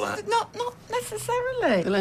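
A middle-aged woman talks close by.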